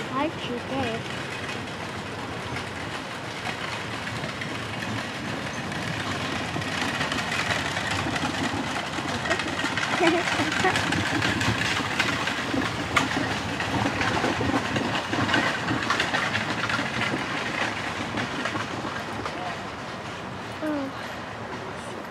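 Horses' hooves thud on grass as a carriage approaches.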